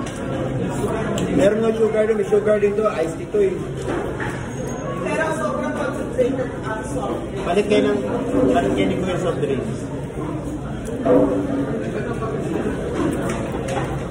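A young adult chews food noisily.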